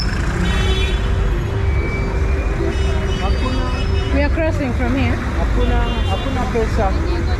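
Traffic rumbles steadily on a busy street.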